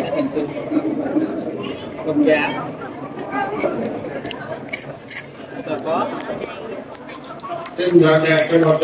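A crowd murmurs and talks nearby.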